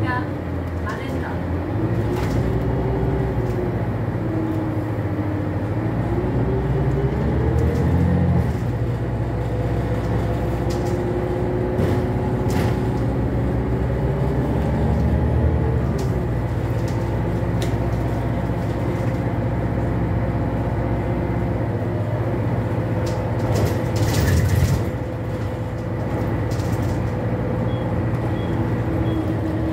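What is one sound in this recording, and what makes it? The bus interior rattles and knocks over bumps.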